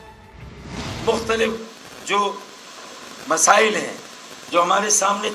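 A middle-aged man speaks forcefully into microphones.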